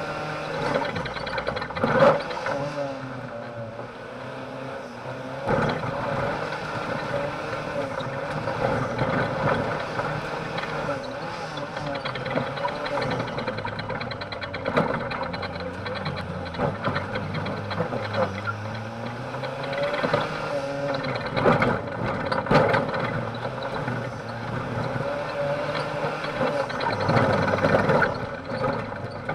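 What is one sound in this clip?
A car engine revs hard and changes pitch as the car races over rough ground.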